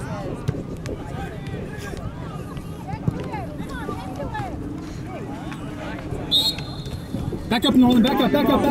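Players shout to each other across an open field outdoors.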